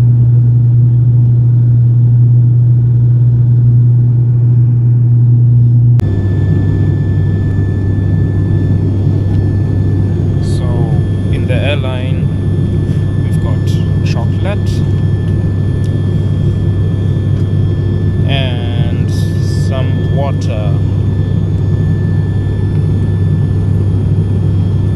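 A propeller aircraft engine drones loudly and steadily.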